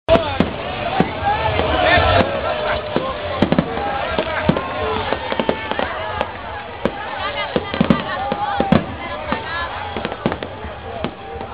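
Fireworks bang and pop overhead, again and again.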